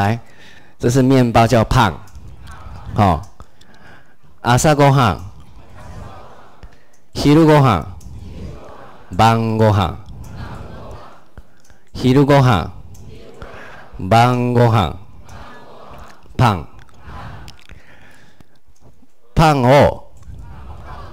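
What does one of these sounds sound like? A man speaks into a microphone in short, clear phrases, heard through a loudspeaker in a room that echoes slightly.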